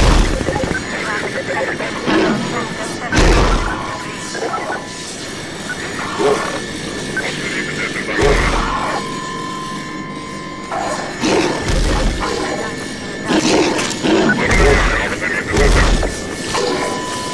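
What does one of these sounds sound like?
Insect-like creatures screech and chitter nearby.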